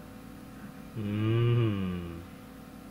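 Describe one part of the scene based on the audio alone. A young man makes a loud, drawn-out vocal sound close to the microphone.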